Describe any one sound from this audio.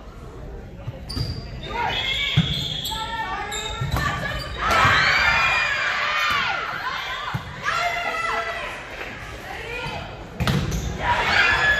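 A volleyball smacks off players' hands and arms.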